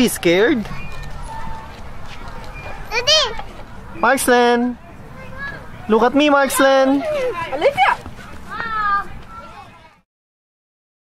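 A young girl speaks in a high, lively voice close by.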